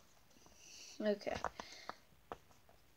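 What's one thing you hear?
A young girl speaks softly, close by.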